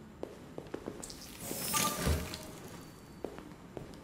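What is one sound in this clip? A door slides open with a soft hiss.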